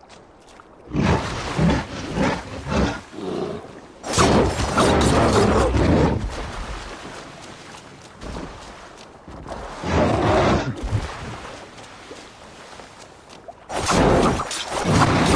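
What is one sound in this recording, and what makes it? Heavy blows thud during a fight.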